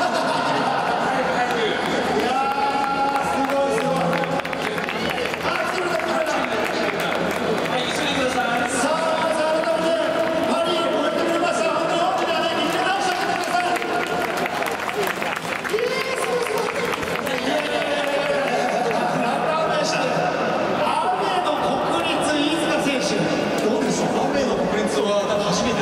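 Music plays loudly over a loudspeaker outdoors.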